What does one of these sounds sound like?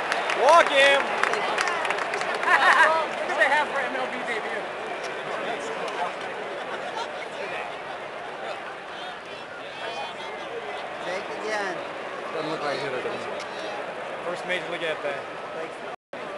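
Nearby spectators talk and call out loudly.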